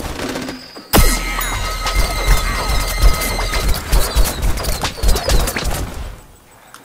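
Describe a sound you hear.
A game's beam weapon hums loudly.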